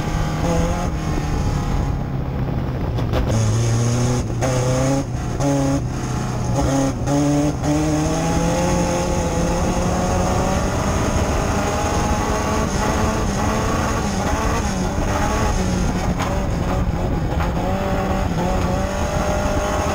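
A race car engine roars loudly from inside the cabin, revving up and down through the corners.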